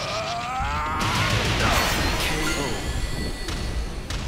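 Electric crackling bursts with a loud whoosh.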